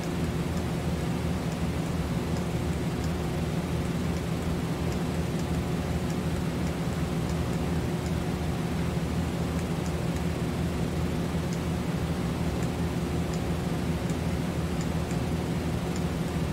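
Heavy aircraft engines drone low and steadily.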